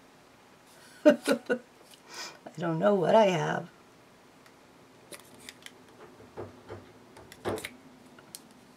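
A plastic marker cap clicks and taps as it is pulled off.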